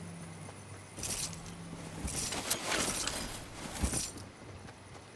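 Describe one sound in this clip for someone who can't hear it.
An ammo box rattles open with a clatter.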